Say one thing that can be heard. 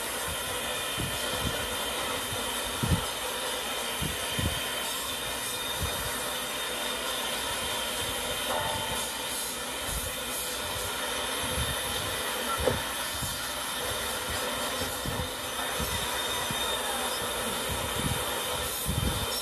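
Metal parts clank now and then.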